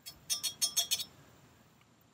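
A metal spoon clinks against a cup.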